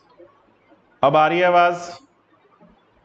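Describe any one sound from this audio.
A man speaks briefly and loudly, close to a microphone.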